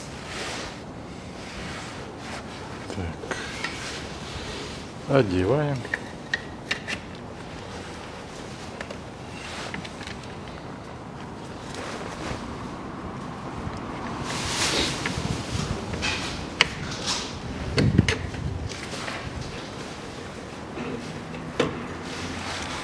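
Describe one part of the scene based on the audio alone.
A plastic cap clicks and rattles as it is handled.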